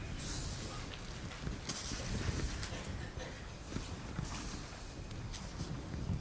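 Pages of a large book rustle as they are turned.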